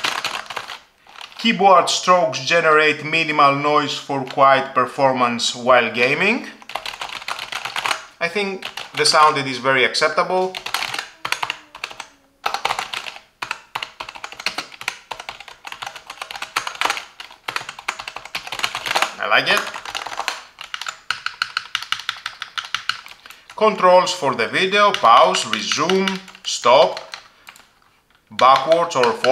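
Keys on a keyboard click and clack rapidly.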